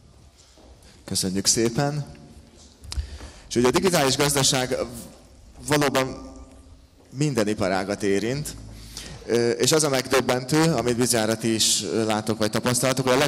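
A man speaks calmly into a microphone, heard over loudspeakers.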